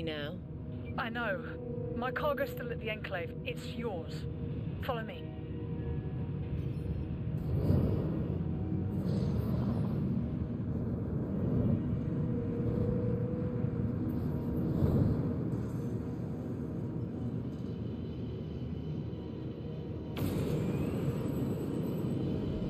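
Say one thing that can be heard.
A spacecraft engine rumbles and roars steadily, surging louder now and then.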